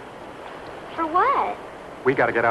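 A child speaks briefly in a high voice.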